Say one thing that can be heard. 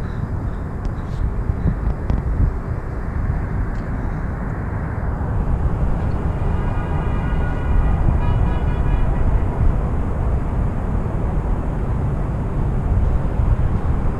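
Wind rumbles and buffets loudly outdoors.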